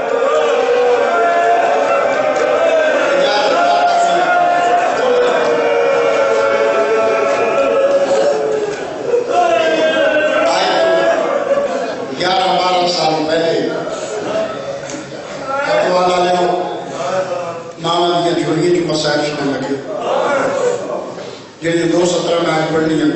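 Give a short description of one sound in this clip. A man sings a mournful chant with feeling into a microphone, heard through loudspeakers in an echoing space.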